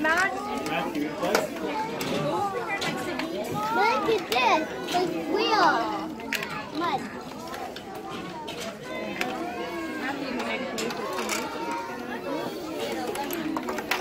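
A crowd of adults and children murmur in the background.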